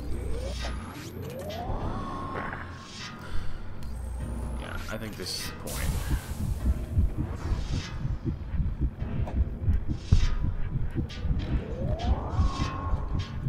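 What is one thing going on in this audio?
A loud blast goes off with a rising whoosh.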